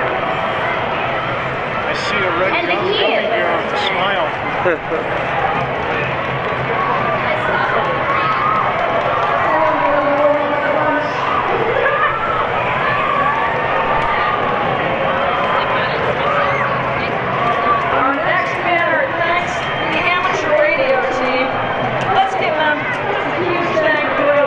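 A large outdoor crowd chatters and calls out all around, close by.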